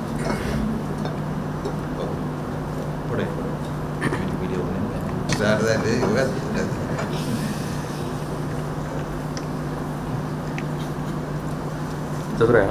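A man speaks into a microphone with animation.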